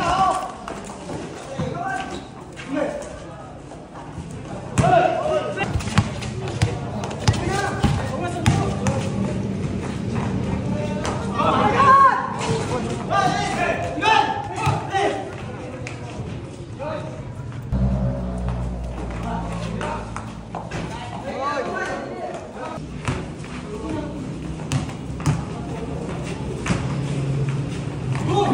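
Children shout and call out as they play under a large echoing roof.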